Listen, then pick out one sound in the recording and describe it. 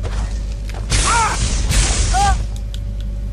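Electricity crackles and buzzes in short loud bursts.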